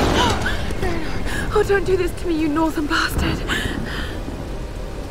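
An older man speaks in a strained, pained voice.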